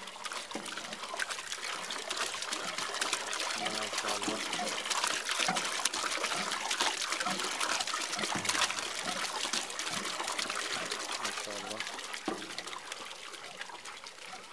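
Water gushes from a hand pump and splashes into a metal basin.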